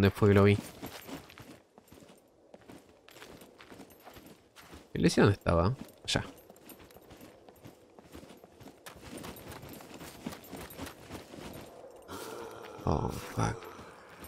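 Footsteps crunch on gravel and grass at a walking pace.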